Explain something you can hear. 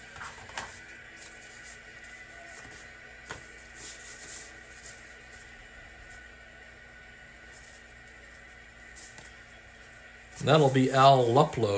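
Playing cards rustle and slide across a table.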